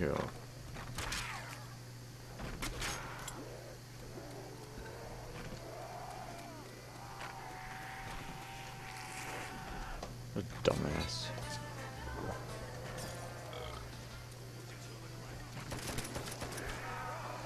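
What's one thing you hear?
A zombie groans and snarls.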